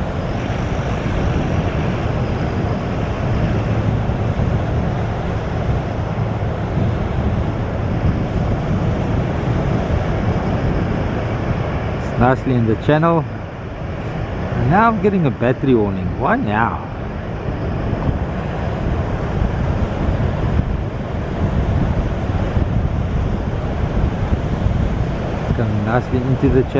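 Waves break and wash onto a shore.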